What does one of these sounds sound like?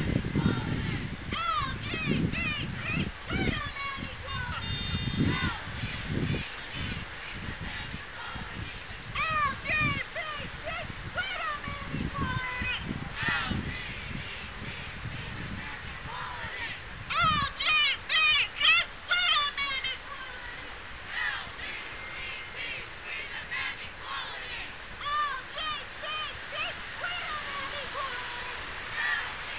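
A crowd chants and shouts in the distance outdoors.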